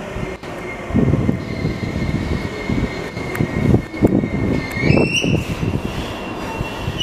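A second train rolls in, wheels clattering over rail joints.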